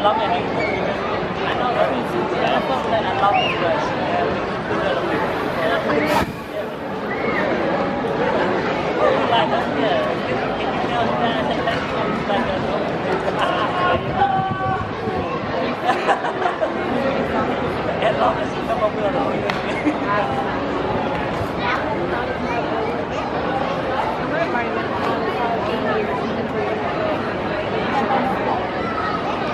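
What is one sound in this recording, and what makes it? A crowd of spectators chatters steadily all around, outdoors.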